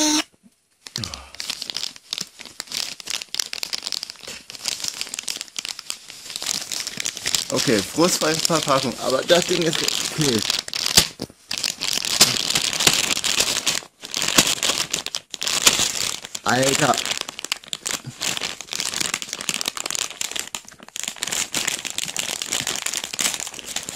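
Paper crinkles and rustles close by as it is handled.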